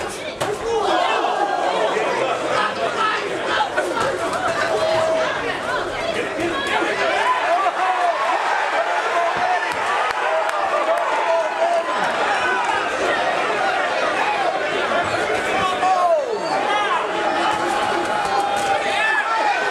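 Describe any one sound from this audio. A crowd of spectators shouts and cheers loudly nearby.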